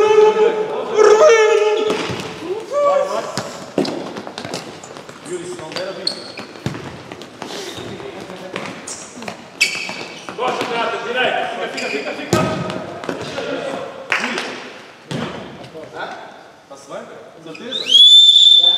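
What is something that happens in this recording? Shoes squeak sharply on a hard indoor court.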